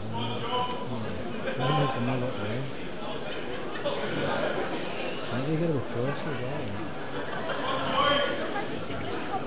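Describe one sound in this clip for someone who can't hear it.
Men call out loudly from a crowd.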